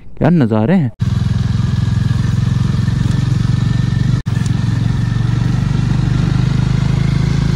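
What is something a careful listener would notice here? A motorcycle engine runs with a low, rapid, throbbing rumble.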